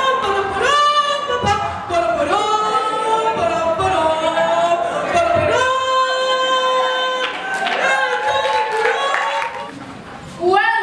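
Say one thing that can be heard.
A young woman sings loudly into a microphone in a large hall.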